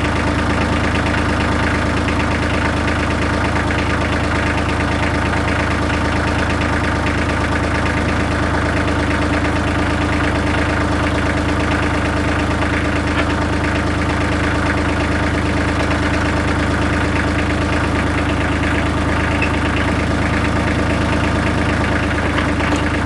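A tractor engine idles steadily close by.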